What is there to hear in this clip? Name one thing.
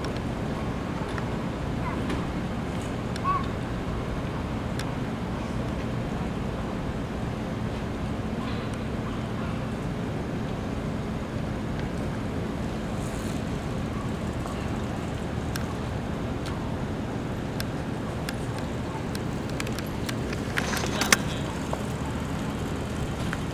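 A bicycle rolls by on pavement with faint clicks and rattles.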